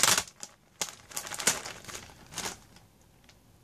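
Clothing rustles as a girl shifts and turns close by.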